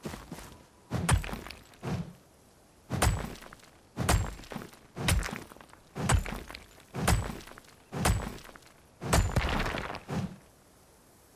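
A pickaxe strikes stone in heavy, regular blows.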